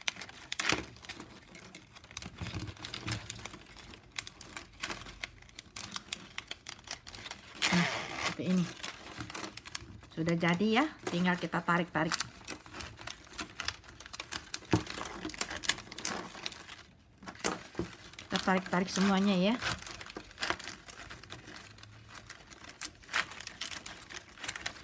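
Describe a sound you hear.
Plastic strapping band strips rustle and crinkle as hands weave and pull them tight.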